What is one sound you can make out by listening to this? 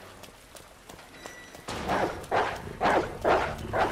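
Quick footsteps run across wet hard ground.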